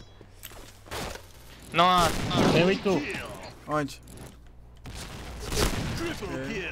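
A rifle fires a loud single shot.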